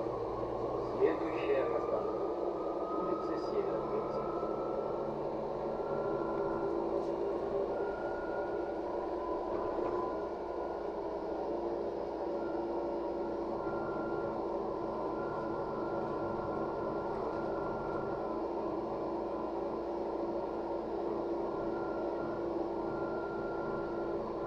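A city bus engine drones, heard from inside the bus as it drives along.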